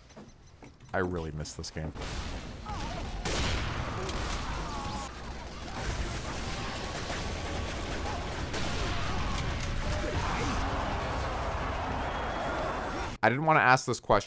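Game sound effects clatter in a noisy battle.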